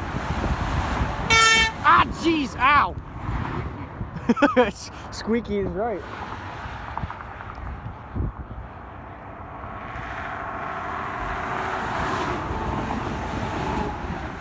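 Traffic rushes steadily along a highway.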